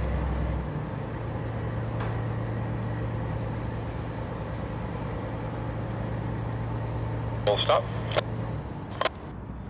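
A generator hums steadily nearby, then stops.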